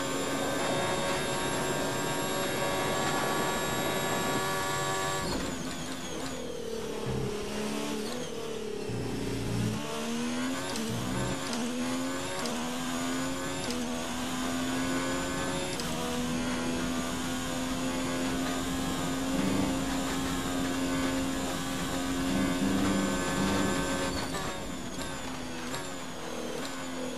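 A racing car engine screams at high revs, then drops in pitch as the car brakes and climbs again as it speeds up.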